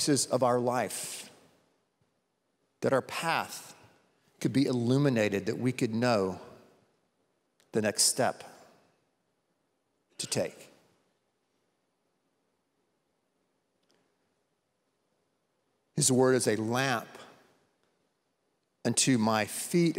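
A middle-aged man speaks with feeling into a microphone, in short bursts with long pauses, in a large echoing hall.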